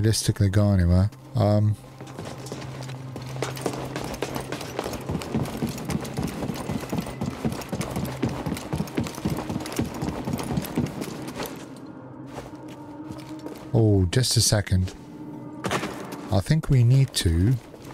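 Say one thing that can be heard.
A young man speaks close to a microphone with animation.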